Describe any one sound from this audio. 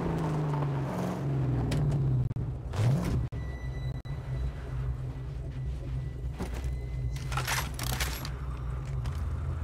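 A car engine rumbles and revs.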